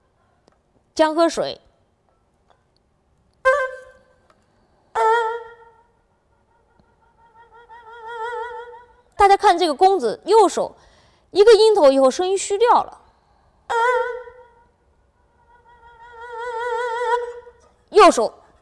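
A bowed two-string fiddle plays single sustained notes with vibrato, swelling and fading.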